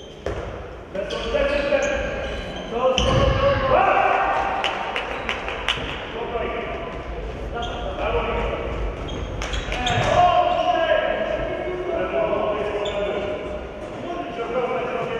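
Spectators cheer and shout, echoing in a large hall.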